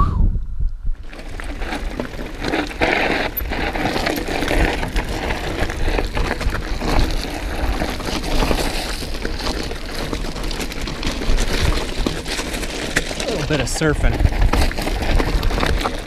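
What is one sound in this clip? Bicycle tyres crunch and rattle over loose rocks.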